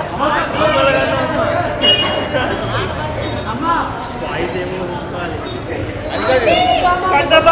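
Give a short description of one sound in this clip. A middle-aged woman speaks loudly and with animation into a microphone close by.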